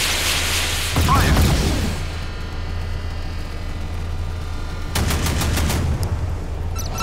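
Naval guns fire with heavy booms.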